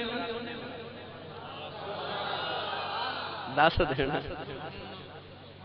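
A man speaks passionately through a loudspeaker, his voice echoing.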